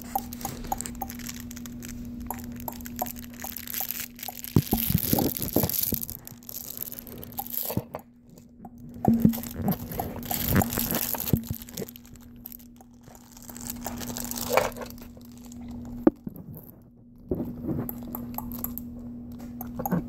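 A baby chews and mouths a soft fabric toy close by.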